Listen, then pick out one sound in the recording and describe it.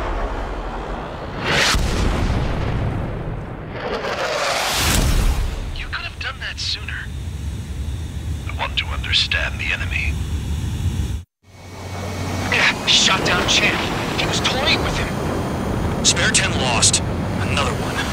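Jet engines roar loudly overhead.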